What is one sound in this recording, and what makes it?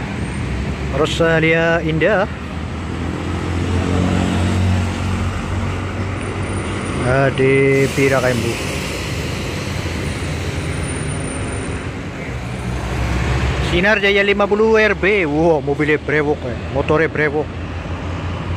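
A coach bus sounds a loud multi-tone horn.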